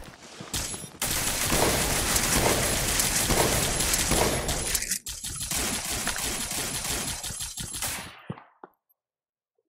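A shotgun fires loud blasts close by.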